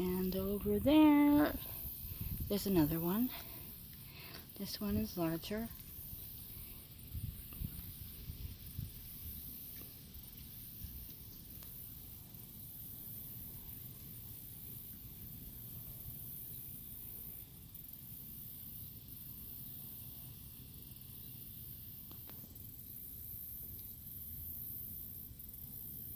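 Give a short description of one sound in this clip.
Wind blows softly outdoors.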